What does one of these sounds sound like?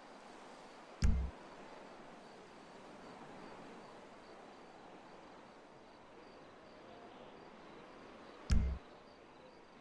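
A short, deep menu thud sounds as a game menu changes.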